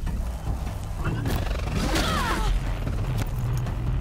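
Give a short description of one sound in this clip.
A laser beam blasts with a crackling hiss.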